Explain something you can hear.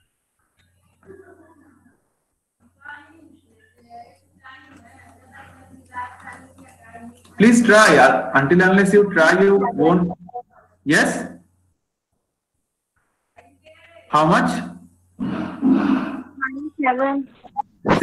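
A man speaks steadily through an online call, with pauses.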